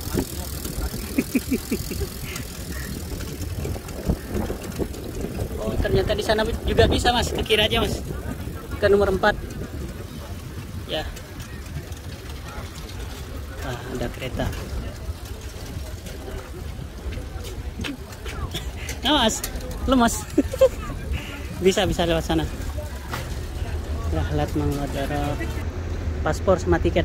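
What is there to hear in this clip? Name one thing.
Luggage trolley wheels rumble steadily over pavement.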